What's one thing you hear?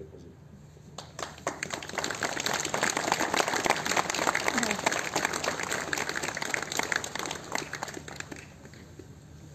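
A crowd applauds outdoors.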